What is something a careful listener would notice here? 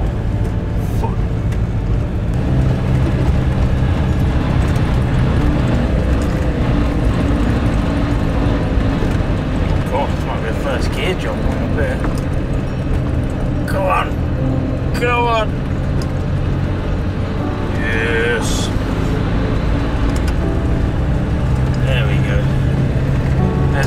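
A car engine rumbles steadily from inside the car as it drives slowly.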